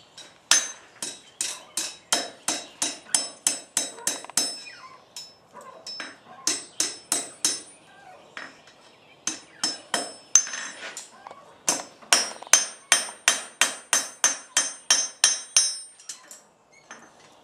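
A hammer strikes hot metal on an anvil in quick, ringing blows.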